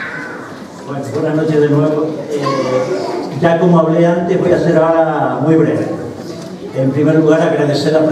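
An elderly man speaks calmly into a microphone, heard through loudspeakers in an echoing hall.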